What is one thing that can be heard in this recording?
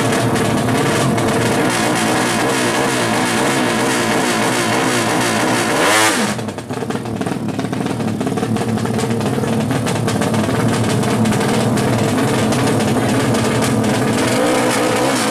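A two-stroke motorcycle engine revs loudly and rapidly, close by.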